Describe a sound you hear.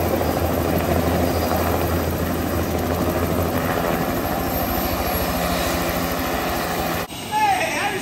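A helicopter engine hums steadily with a whirring rotor nearby.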